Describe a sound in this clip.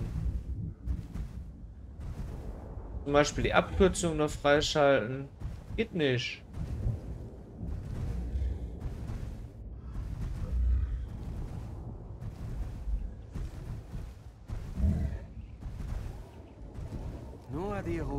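A large creature's feet thud on sandy ground at a steady walking pace.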